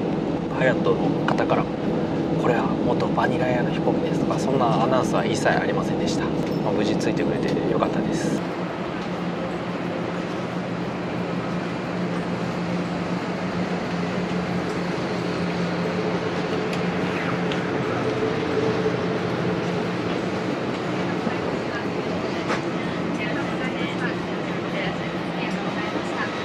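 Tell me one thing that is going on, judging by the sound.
A steady low hum of cabin ventilation fills the background.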